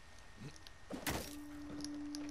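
A grappling hook clinks against rock.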